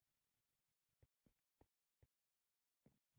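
Footsteps tap on a hard stone floor.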